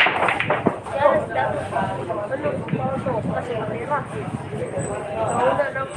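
Billiard balls knock together with sharp clicks.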